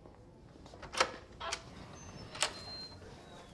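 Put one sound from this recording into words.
A metal locker door clanks open and shut.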